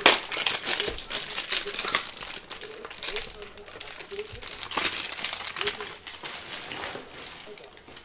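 Plastic wrapping crinkles as it is peeled off.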